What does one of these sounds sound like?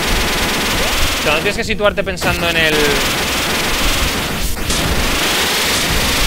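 A gun fires short electronic shots.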